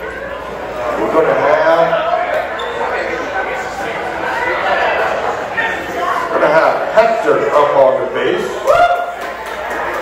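Many people chatter and talk in a busy, echoing room.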